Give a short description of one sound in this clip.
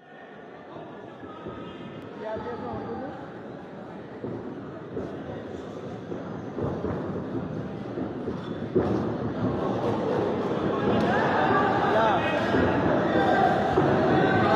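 A crowd cheers and shouts in a large echoing hall, growing louder.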